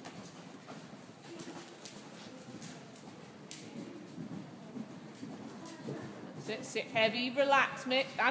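Horse hooves thud softly on a sand floor.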